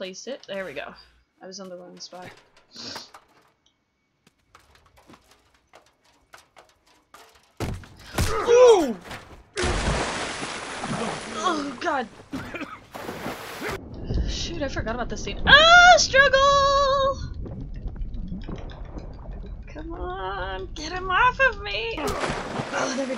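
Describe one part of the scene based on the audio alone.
A young woman talks and exclaims with animation close to a headset microphone.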